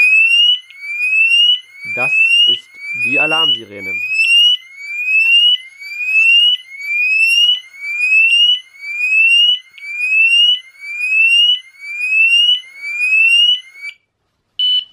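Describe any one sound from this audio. An electronic alarm sounds loud, rising whoops over and over.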